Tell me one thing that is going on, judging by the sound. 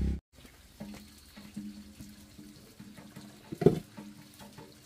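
A metal pot lid clanks as it is lifted.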